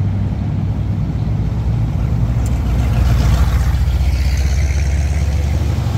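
A vintage hot rod pickup truck drives past.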